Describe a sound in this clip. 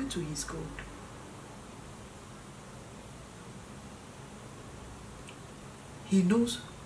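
A middle-aged woman speaks calmly and close by.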